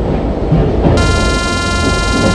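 A train horn blares.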